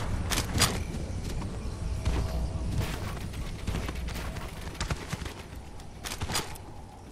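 Building pieces snap into place with sharp clacks.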